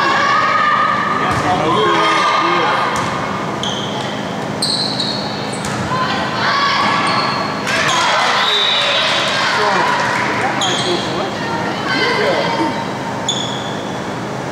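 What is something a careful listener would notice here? Sneakers squeak on a hardwood gym floor.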